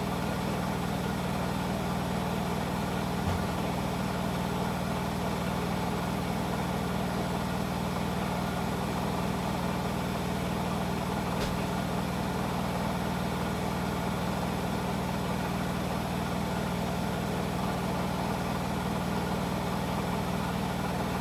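A washing machine spins fast with a loud, steady hum and rumble.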